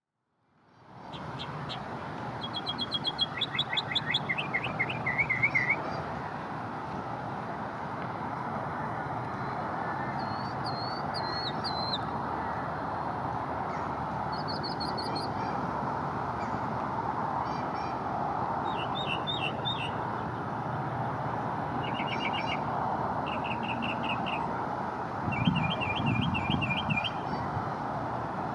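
A northern mockingbird sings, mimicking other birds' calls in short repeated phrases.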